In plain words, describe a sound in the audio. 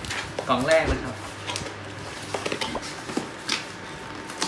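A cardboard box rustles and scrapes as it is torn open.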